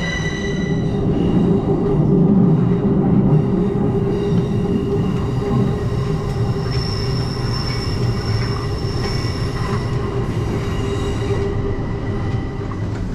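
A metro train rumbles and hums while riding.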